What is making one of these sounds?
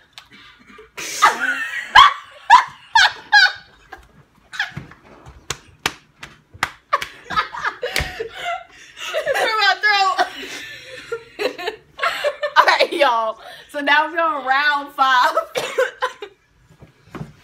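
Young women laugh loudly and shriek close by.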